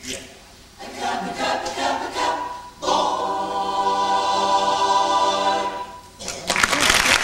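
A large young choir sings together in an echoing hall.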